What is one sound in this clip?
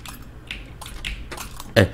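A metal pick clicks against the pins of a lock.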